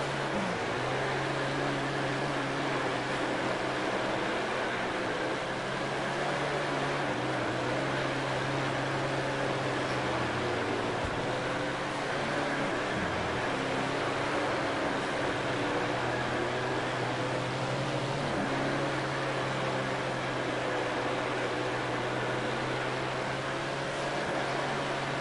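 A racing car engine roars loudly, its pitch rising and falling with the throttle.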